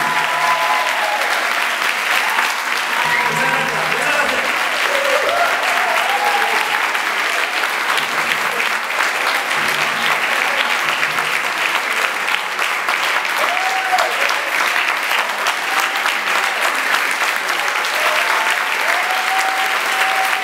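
A group of people clap their hands in a fast, steady rhythm.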